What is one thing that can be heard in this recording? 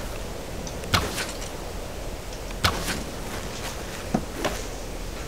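An arrow snaps loose from a bow.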